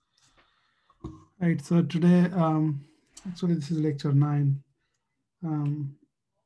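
A young man speaks calmly into a microphone over an online call.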